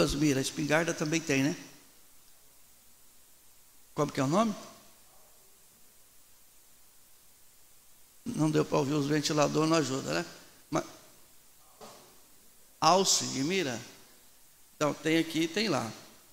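A middle-aged man preaches with animation into a microphone, in bursts with pauses.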